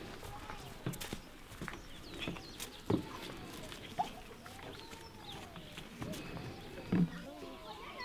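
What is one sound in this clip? Plastic buckets knock and rattle as they are carried outdoors.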